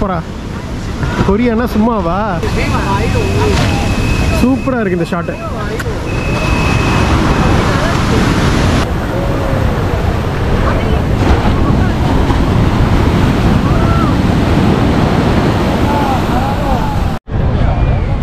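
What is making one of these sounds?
Waves wash and break on the shore.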